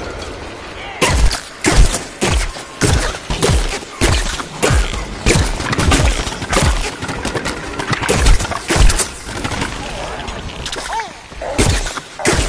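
A cannon fires gooey shots in quick bursts.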